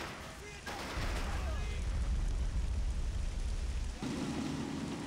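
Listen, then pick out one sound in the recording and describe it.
A shell explodes with a deep, rumbling boom.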